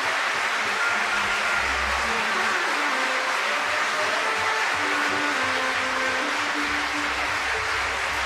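A man speaks through a microphone over loudspeakers in a large hall.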